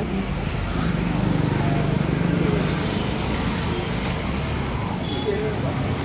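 Traffic hums along a road outdoors.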